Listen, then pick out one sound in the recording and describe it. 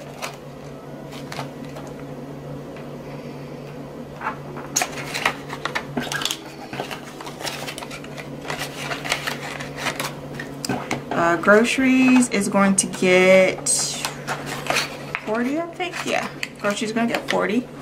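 A plastic sleeve crinkles as it is opened and filled.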